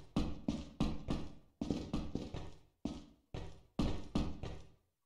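Heavy footsteps thud quickly and echo in a hollow corridor.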